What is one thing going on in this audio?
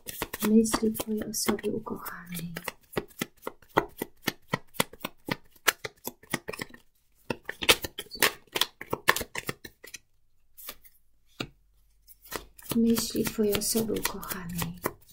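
Playing cards riffle and flick rapidly as they are shuffled by hand.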